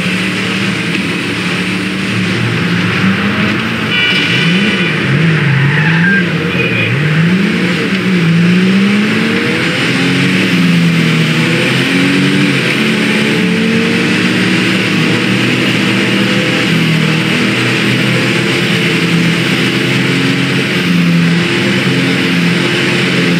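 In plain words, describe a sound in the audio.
A car engine roars, revving up and down at speed.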